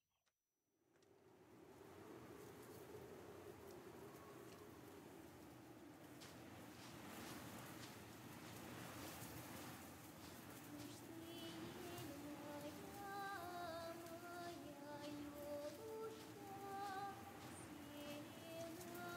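Wind blows steadily across an open field.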